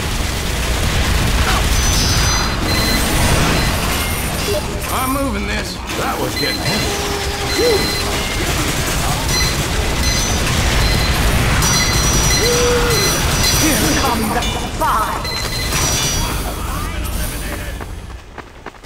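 Gunfire rattles rapidly in a video game.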